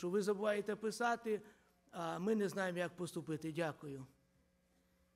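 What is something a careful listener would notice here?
A middle-aged man speaks with animation through a microphone in a large echoing hall.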